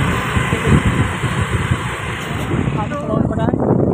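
Wind rushes past a moving motorcycle.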